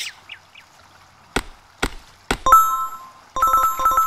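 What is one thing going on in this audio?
An axe chops into wood with sharp knocks.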